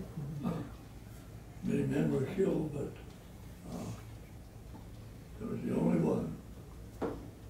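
An elderly man speaks calmly and slowly, close by.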